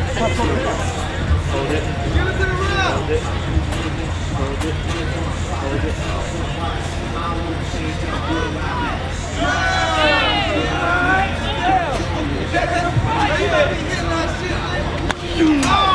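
A man shouts taunts.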